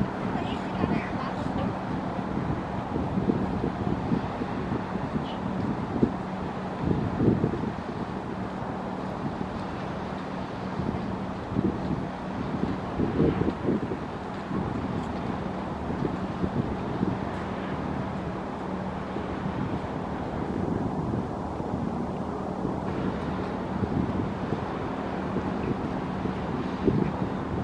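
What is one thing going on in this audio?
Water splashes and churns in a boat's wake.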